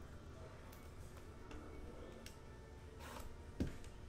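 Cards slide and tap against each other.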